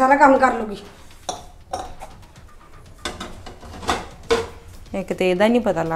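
Dishes clink and clatter in a sink.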